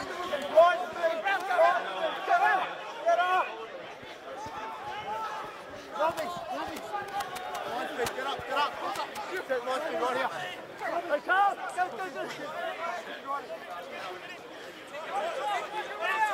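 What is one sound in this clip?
Men shout to each other outdoors across an open field.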